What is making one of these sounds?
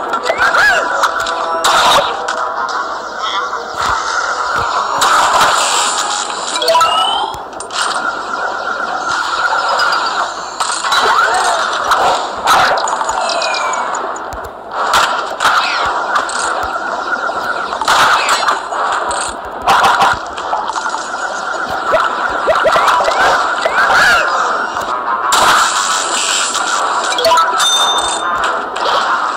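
Electric blasts of a game weapon crackle and zap in quick bursts.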